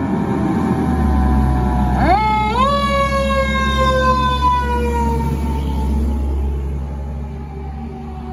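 A fire truck engine rumbles loudly as it passes close by.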